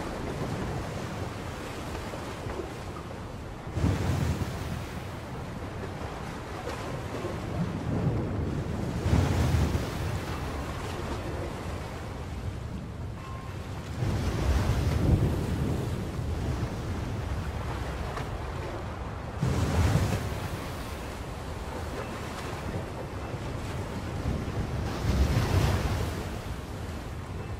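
Rough sea waves surge and crash in a steady roar, outdoors in strong wind.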